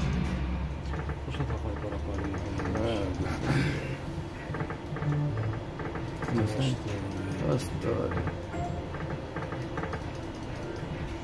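A slot machine's reels spin with rapid electronic ticking.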